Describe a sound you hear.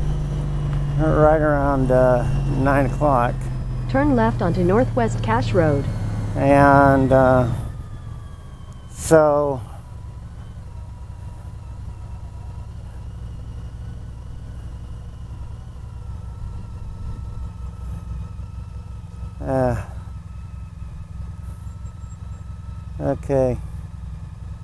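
A motorcycle engine revs up and drops in quick bursts.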